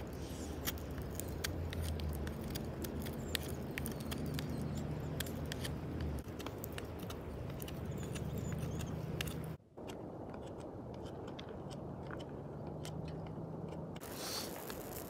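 A knife scrapes and shaves a wooden stick.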